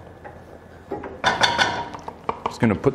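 A spatula scrapes food from a pan into a bowl.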